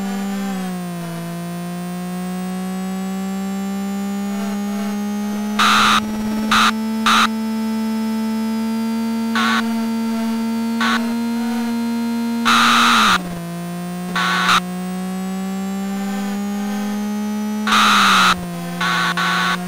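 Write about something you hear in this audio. A video game car engine drones steadily at a high pitch, rising and falling with speed.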